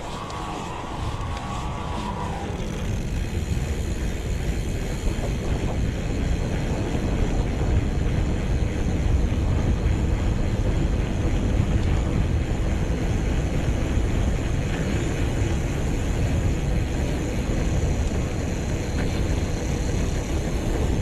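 Wind rushes loudly past a bicycle rider.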